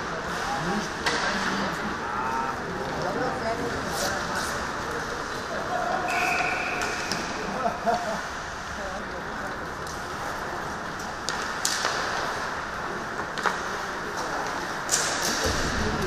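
Hockey sticks clack sharply against the puck.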